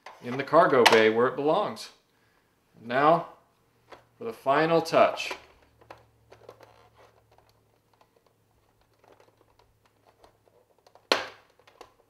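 Plastic toy parts click and rattle as hands fit them together.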